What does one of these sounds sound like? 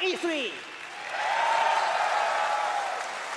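An audience cheers and applauds in a large hall.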